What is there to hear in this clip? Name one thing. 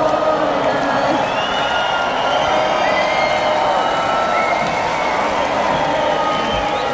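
People in a crowd whistle shrilly.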